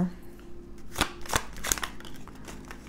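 Playing cards rustle and flick as they are shuffled by hand.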